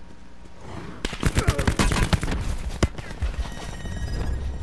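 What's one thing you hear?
Rapid gunfire cracks loudly.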